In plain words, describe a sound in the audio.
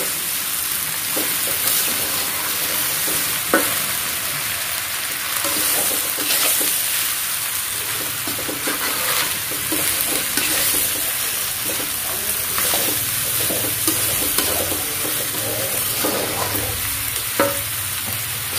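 A metal spatula scrapes and clanks against a metal pan.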